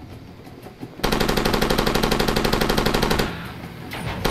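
A heavy machine gun fires a rapid, loud burst.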